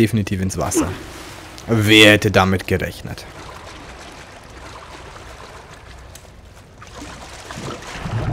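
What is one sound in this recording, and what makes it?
Water sloshes and splashes around someone wading and swimming through it.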